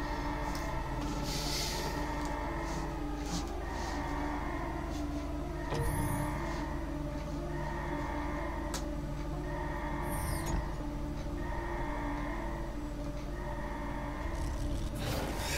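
An alarm sounds in repeating pulses.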